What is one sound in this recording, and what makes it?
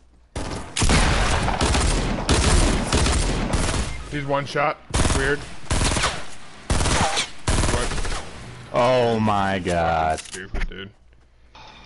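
Rapid gunshots crack loudly in a video game.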